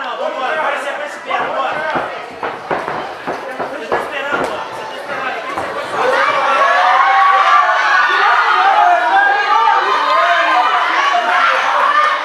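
A crowd cheers and shouts in a large room, growing louder.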